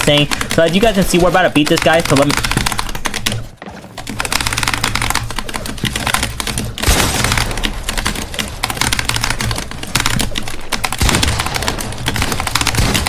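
Video game gunfire and building clatter play in quick bursts.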